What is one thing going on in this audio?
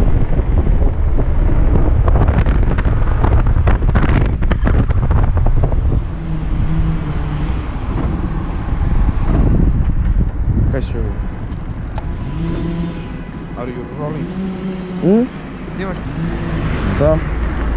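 A motor scooter engine hums steadily.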